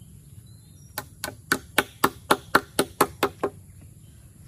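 A mallet knocks rapidly on a wooden post.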